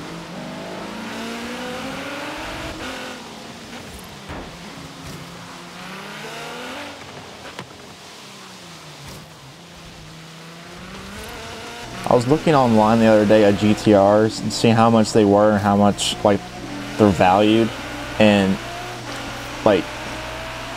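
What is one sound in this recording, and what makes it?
A sports car engine roars, revving up and down, louder and harsher in the later half.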